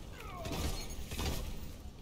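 A weapon fires in rapid bursts.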